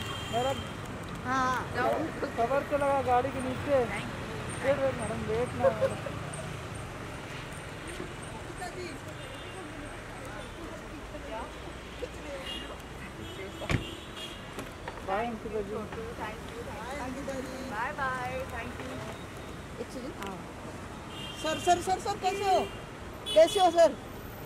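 Men call out and talk nearby, outdoors.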